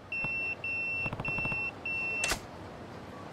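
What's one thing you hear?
A pager beeps in quick, steady bursts.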